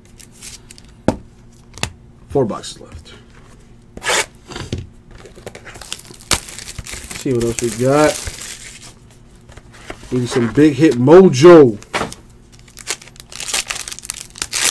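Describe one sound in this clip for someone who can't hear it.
A foil wrapper crinkles and rustles as it is handled.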